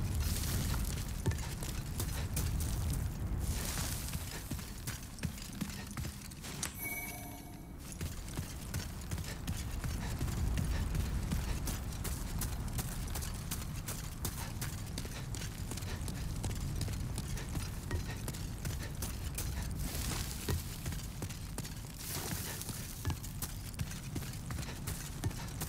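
Footsteps crunch quickly over gravelly ground.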